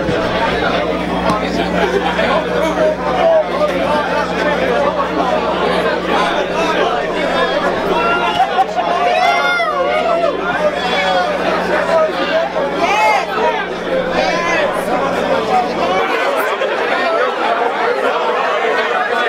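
A young man talks with animation into a microphone over loudspeakers.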